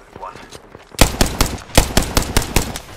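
A game rifle fires in bursts of rapid shots.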